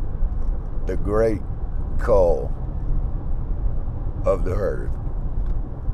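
A middle-aged man speaks casually in short bursts, close by.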